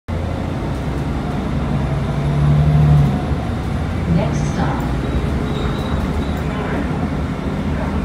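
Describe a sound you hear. A bus engine hums and rumbles steadily from inside the bus.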